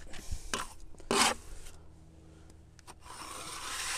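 A trowel scrapes wet mortar onto concrete blocks.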